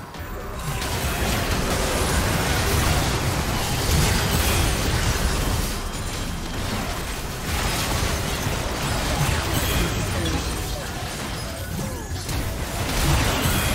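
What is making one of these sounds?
Magic blasts and explosions crackle and boom in a busy fantasy battle.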